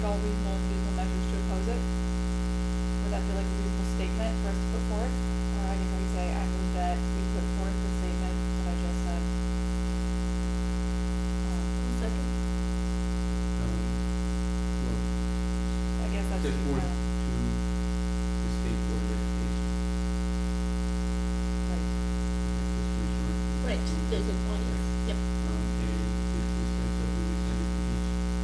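A man speaks calmly, heard faintly through a microphone.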